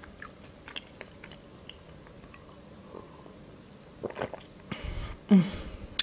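A young woman sips a drink from a glass.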